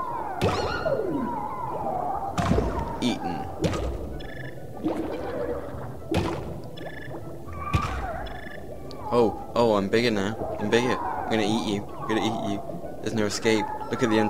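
Cartoonish bubbly pops and chirps sound in quick bursts.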